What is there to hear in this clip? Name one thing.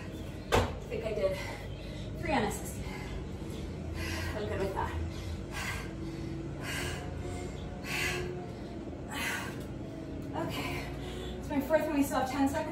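Feet thump on a concrete floor.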